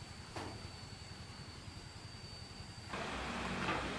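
A broth bubbles and simmers in a pot.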